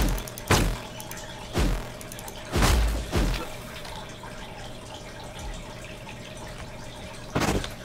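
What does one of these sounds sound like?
Sharp swooshing hits from a game attack land in short bursts.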